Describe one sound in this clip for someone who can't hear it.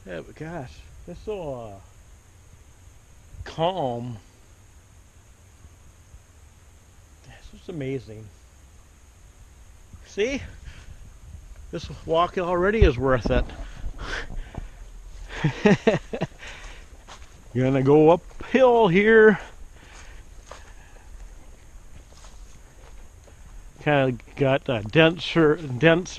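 A middle-aged man talks calmly close to a microphone, outdoors, with short pauses.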